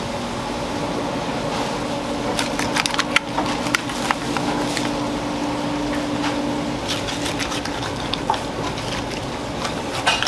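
Knife blades scrape and tap against fish bones.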